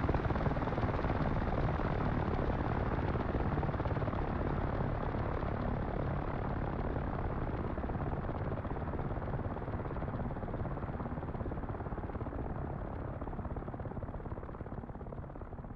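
Helicopter rotors thump and roar close by, slowly fading as the helicopters fly away.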